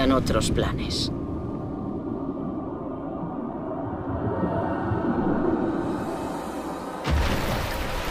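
Water churns with a deep, muffled underwater rumble.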